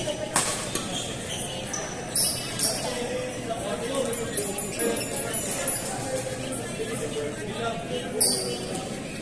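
Several young men and women chatter and call out in the distance.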